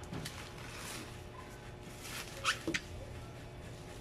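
A plastic tub knocks against a cardboard box.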